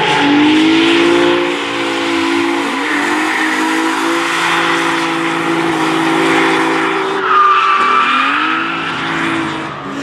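Tyres squeal on tarmac.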